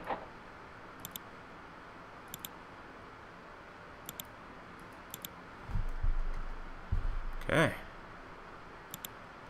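Soft menu clicks tick in quick pairs, again and again.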